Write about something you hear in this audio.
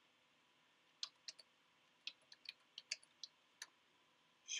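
Keys click quickly on a keyboard.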